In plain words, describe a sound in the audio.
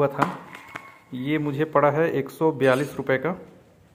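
Crumpled paper crinkles as it is handled.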